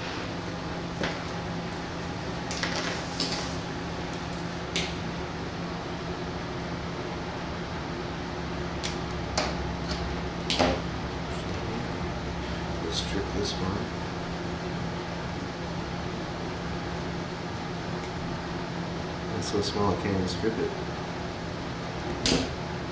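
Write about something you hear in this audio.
Alligator clips and wire leads click and tap against a glass counter.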